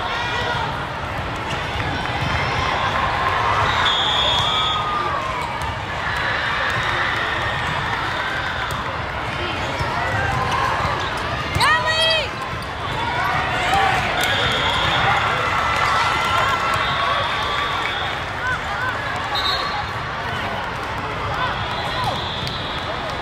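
Many voices chatter and shout across a large echoing hall.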